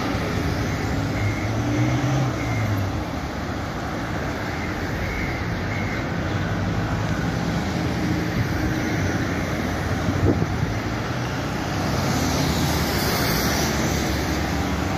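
A convoy of cars and vans drives past, engines rumbling.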